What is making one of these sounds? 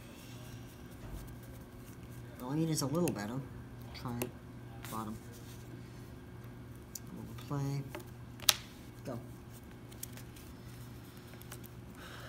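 Playing cards are shuffled with soft riffling clicks.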